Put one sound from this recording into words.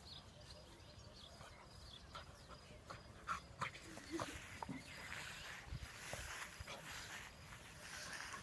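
A dog rolls and rustles on grass.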